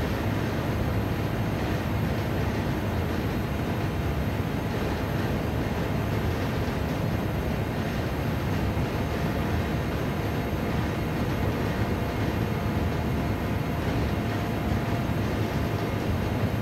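Tyres rumble over the track surface.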